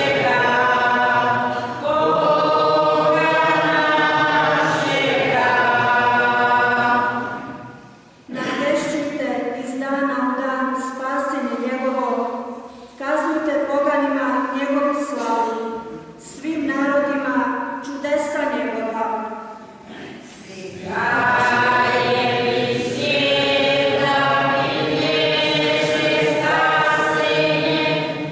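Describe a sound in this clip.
A young woman sings through a microphone, holding long notes.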